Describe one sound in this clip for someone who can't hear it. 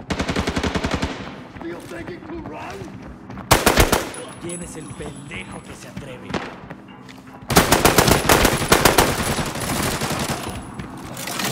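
Rapid gunfire bursts loudly in short volleys.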